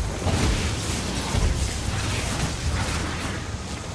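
Electric bolts crackle and zap in quick bursts.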